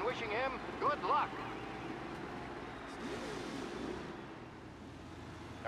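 Vintage racing car engines hum and drone.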